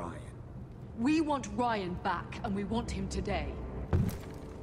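A young woman speaks firmly.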